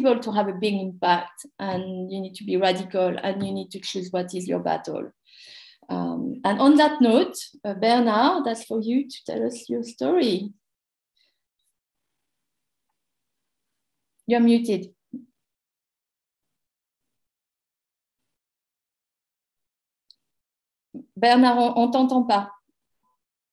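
A middle-aged woman talks calmly over an online call.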